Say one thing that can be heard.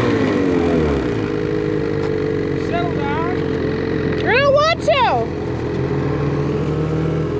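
Snowmobile engines idle steadily nearby.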